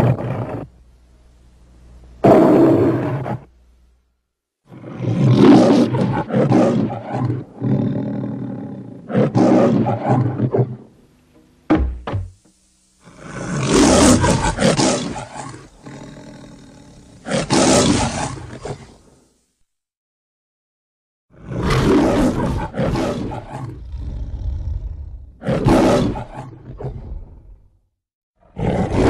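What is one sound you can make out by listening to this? A lion roars loudly, again and again, with pauses between the roars.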